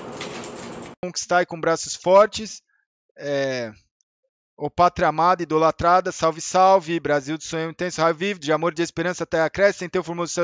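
A man talks with animation through a microphone.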